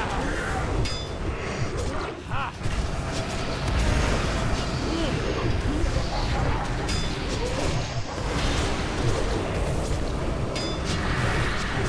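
Weapon strikes and spell effects clash in a video game battle.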